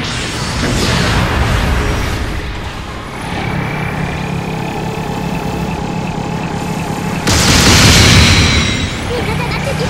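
A robot's jet thrusters roar.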